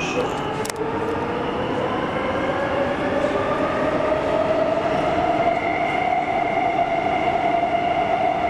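A train's electric motor whines and slowly rises in pitch as the train speeds up.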